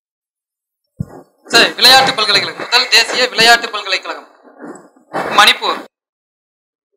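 A young man speaks into a microphone with animation, heard through a loudspeaker outdoors.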